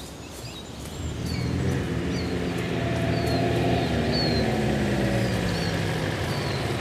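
A car engine rumbles as a car drives slowly closer over a dirt track.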